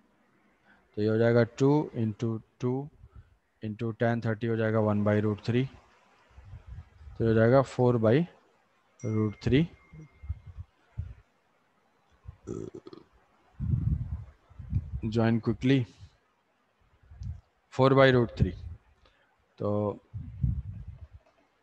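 A young man explains calmly into a close microphone.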